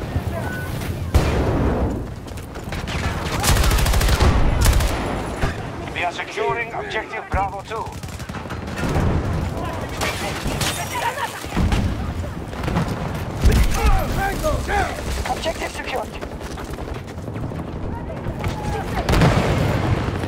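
Gunfire and explosions crack and boom in a video game.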